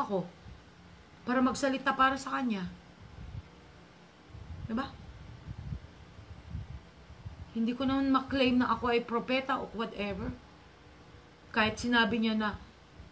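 A middle-aged woman talks with animation close to a microphone, in bursts with pauses.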